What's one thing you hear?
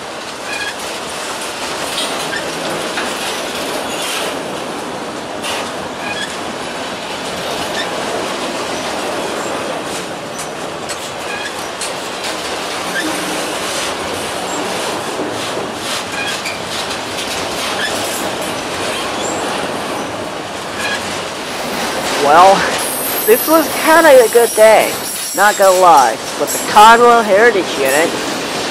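A freight train rumbles and clatters steadily along the tracks close by.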